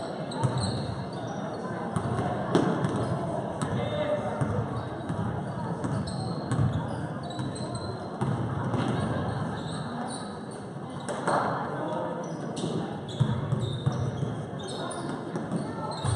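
A basketball bounces on a hard floor in a large echoing gym.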